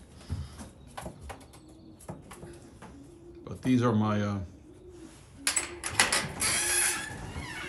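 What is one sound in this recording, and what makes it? Pigeons coo nearby.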